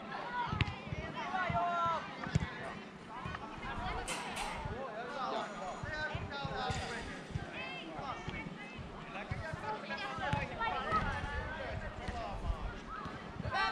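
Young girls shout and call out to each other across an open outdoor field.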